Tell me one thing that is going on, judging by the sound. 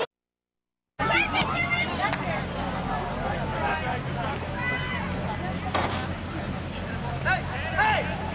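Soccer players shout to each other across an open field.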